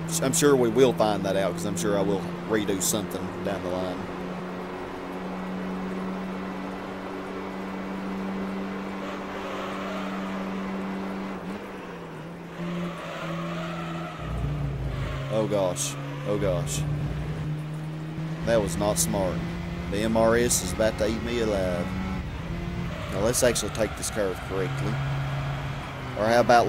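A car engine drones steadily, shifting pitch as the car speeds up and slows down.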